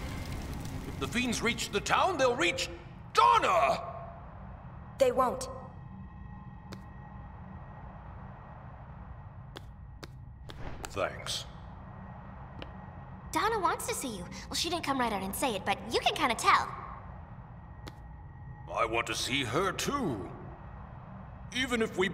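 A man speaks in a deep, serious voice.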